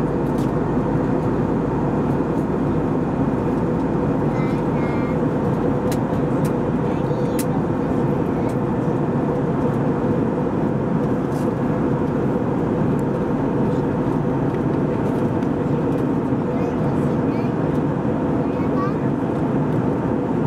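Jet engines roar with a steady, deep drone inside an aircraft cabin.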